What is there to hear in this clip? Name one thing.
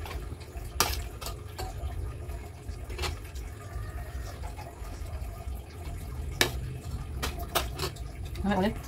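Metal cutlery clinks and scrapes on a plate.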